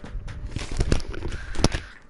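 A video game plays the crunch of leaf blocks breaking.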